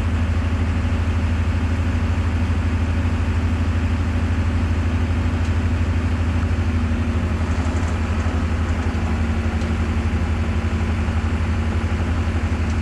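A vehicle engine idles with a steady low rumble.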